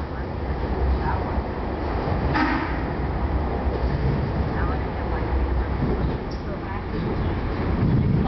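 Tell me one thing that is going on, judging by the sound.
A train rumbles steadily along the tracks through a tunnel.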